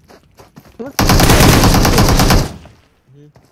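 Gunfire bursts loudly.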